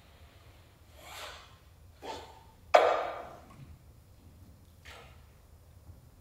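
A piano plays a few soft, separate notes in a large echoing hall.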